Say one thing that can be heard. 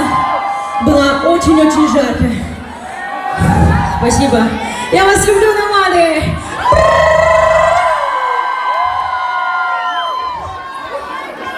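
A young woman sings into a microphone through loud speakers.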